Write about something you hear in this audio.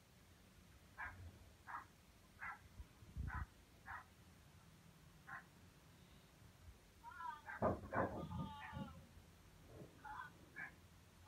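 A dog whines in short, high bursts close by.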